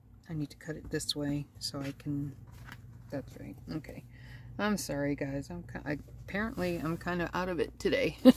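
Hands smooth and rustle fabric on a table.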